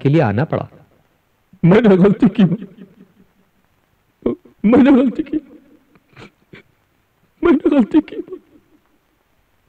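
A man speaks in a strained, emotional voice close by.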